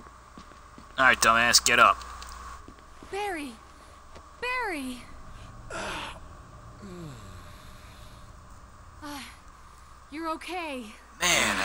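A young woman calls out urgently and with alarm.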